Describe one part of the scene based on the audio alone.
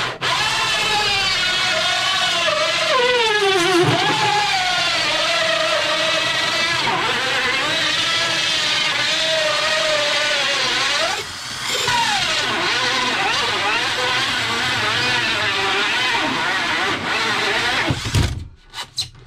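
A cordless drill whirs, its motor rising and falling in pitch as it drives a screw.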